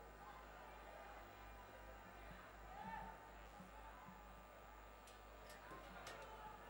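A young woman sings softly through a loudspeaker.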